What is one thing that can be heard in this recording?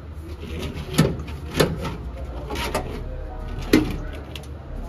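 A metal tool knocks sharply against sheet metal.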